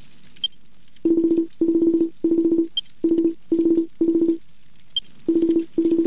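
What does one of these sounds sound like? A soft chime blips briefly between lines of dialogue.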